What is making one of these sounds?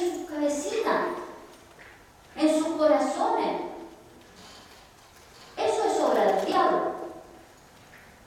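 A woman speaks calmly in short phrases with pauses, in a large echoing hall.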